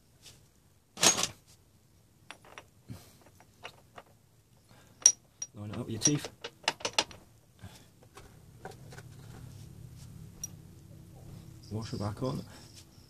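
Small metal parts click and clink.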